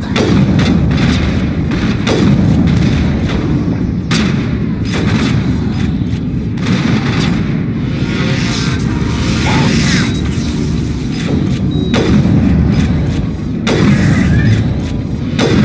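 Sniper rifle shots crack one after another.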